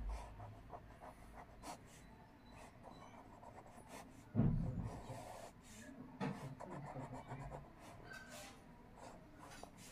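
A pen scratches softly on paper as lines are drawn.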